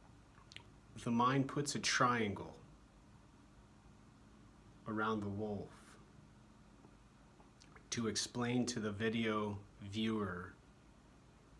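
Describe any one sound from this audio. A man speaks close up, calmly and emphatically, in short bursts.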